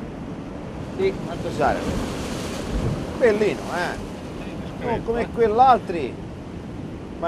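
An older man speaks close by, with animation.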